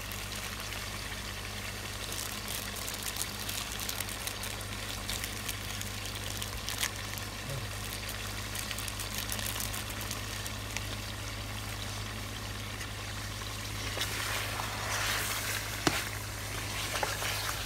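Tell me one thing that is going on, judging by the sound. Meat sizzles steadily in a hot pan.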